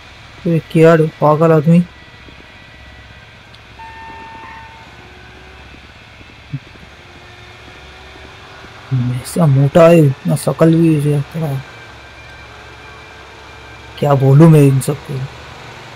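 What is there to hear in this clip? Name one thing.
A heavy forklift engine hums steadily.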